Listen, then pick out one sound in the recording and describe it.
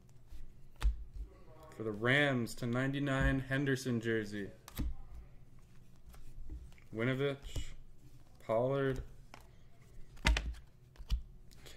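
Trading cards rustle and slide between fingers.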